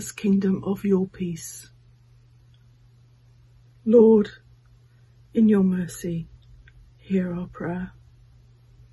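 An older woman speaks slowly and calmly, close to a microphone, with long pauses.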